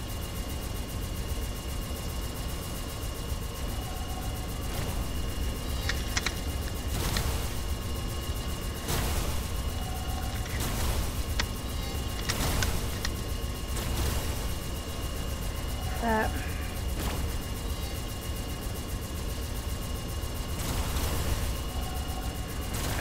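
Guns fire rapid laser blasts.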